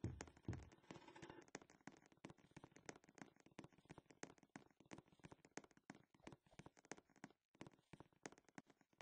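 Quick footsteps patter steadily as a figure runs.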